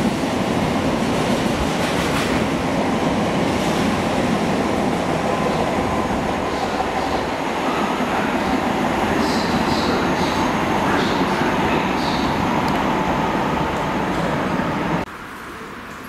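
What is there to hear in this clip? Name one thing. A freight train rumbles and rattles past close by, then fades into the distance.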